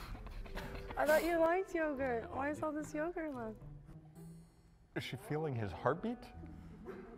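A young woman speaks playfully into a microphone.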